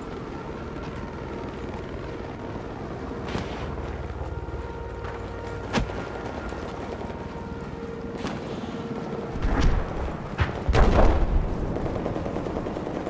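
Loud explosions boom nearby.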